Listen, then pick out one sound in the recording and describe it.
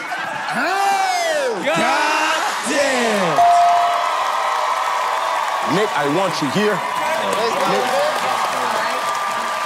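A studio crowd cheers and applauds loudly.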